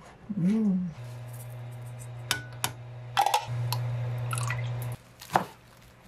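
Water pours into a pot.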